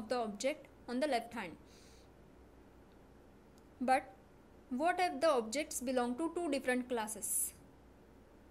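A young woman speaks calmly and clearly into a close microphone, in short phrases with pauses.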